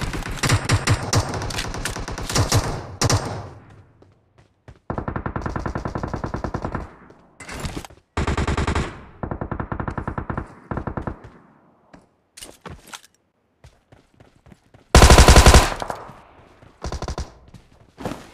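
Rapid rifle fire rattles in short bursts.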